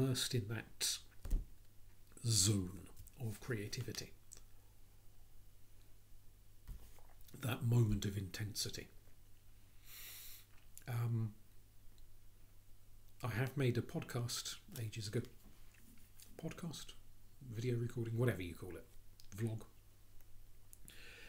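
A middle-aged man speaks calmly and close up, in bursts with pauses.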